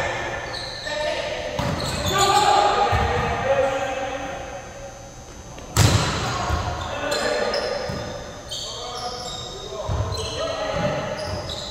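Adult men and women call out to each other across an echoing gym.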